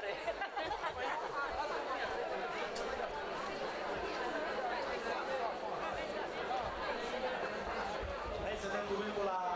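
A crowd of people chatters and laughs nearby.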